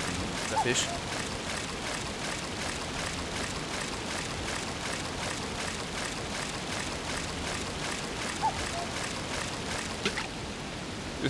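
A fishing reel ticks rapidly as line is wound in.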